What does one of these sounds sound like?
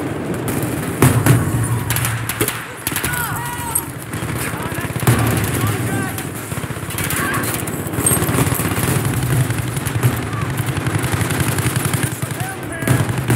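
Gunshots crack in short bursts, echoing in an enclosed space.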